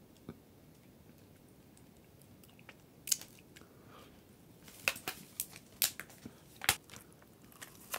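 Plastic food packaging crinkles and rustles.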